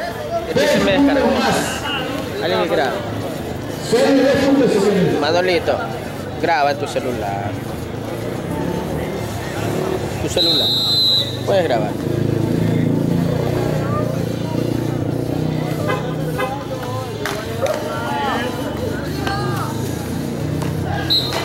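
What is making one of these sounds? A crowd of young men shout and chatter outdoors.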